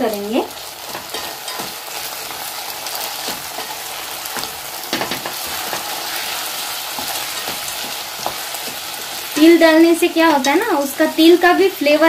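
A wooden spoon stirs and scrapes dry grains in a pot.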